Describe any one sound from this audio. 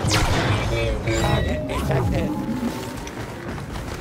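Blasters fire in rapid laser bursts.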